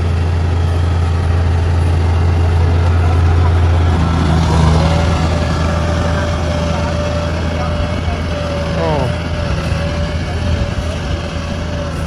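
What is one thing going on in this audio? Tracks of a combine harvester clatter over stubble.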